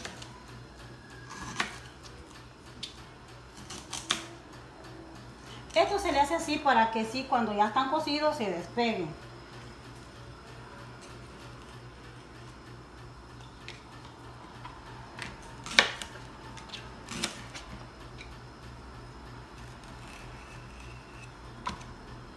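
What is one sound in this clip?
A knife cuts through plantain onto a plastic cutting board.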